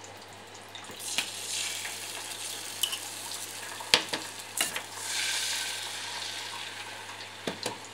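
Beaten egg sizzles as it is poured into a hot pan.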